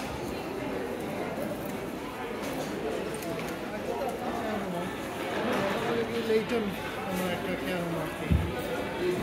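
A crowd of people chatters in a busy market.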